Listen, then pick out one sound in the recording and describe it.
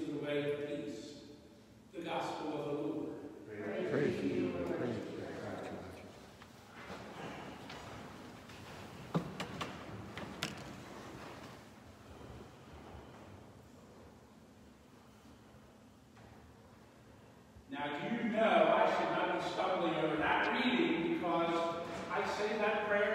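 A middle-aged man speaks through a microphone, his voice echoing in a large hall.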